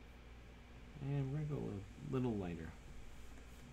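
A man speaks briefly and calmly into a close microphone.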